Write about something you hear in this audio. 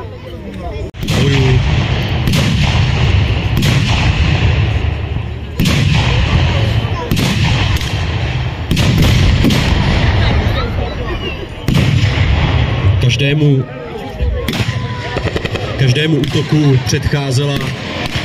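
Loud explosions boom one after another, echoing outdoors.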